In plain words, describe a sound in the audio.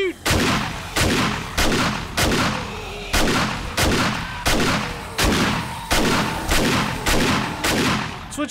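A shotgun fires again and again in heavy booming blasts that echo away.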